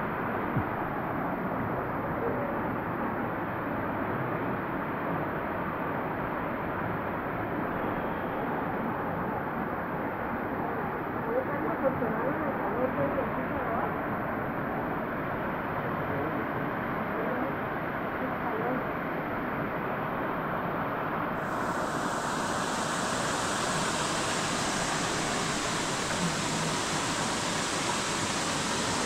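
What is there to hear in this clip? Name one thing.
A waterfall rushes steadily in the distance.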